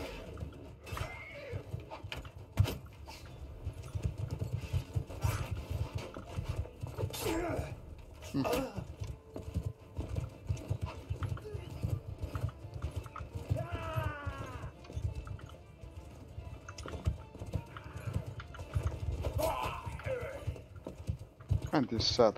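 Horse hooves thud steadily at a gallop.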